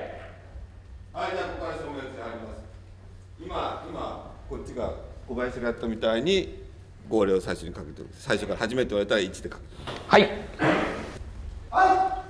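A middle-aged man speaks calmly, explaining.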